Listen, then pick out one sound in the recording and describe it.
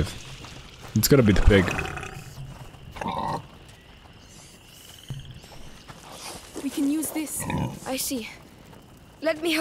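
A pig grunts close by.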